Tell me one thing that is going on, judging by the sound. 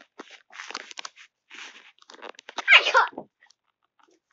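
Young girls squeal and giggle playfully close by.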